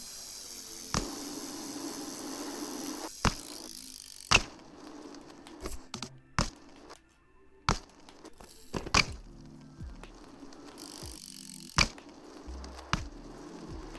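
A bicycle lands with sharp thuds and clatters.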